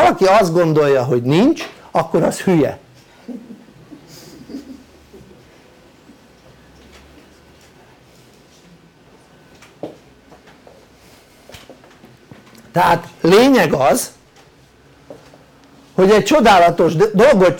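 An elderly man speaks with animation, close by, pausing now and then.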